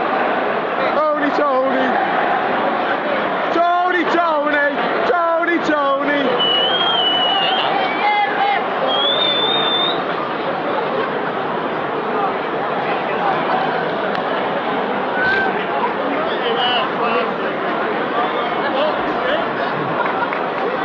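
A large stadium crowd chants loudly in unison, heard from within the stands.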